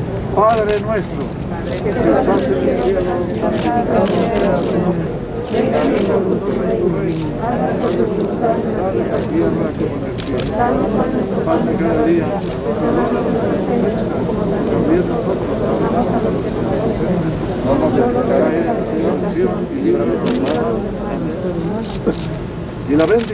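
A light wind blows outdoors.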